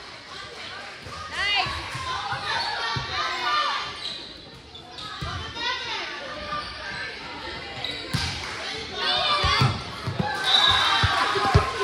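Young women call out and shout in a large echoing gym.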